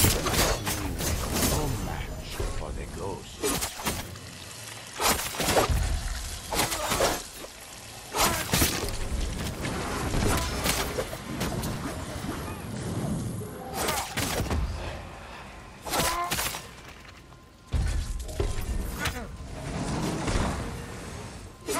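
Heavy whooshing strikes burst out with deep booms.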